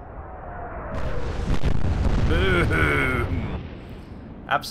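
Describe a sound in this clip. A huge explosion booms and rumbles.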